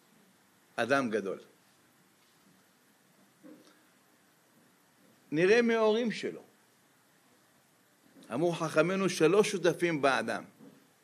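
An elderly man speaks with animation into a microphone, pausing between phrases.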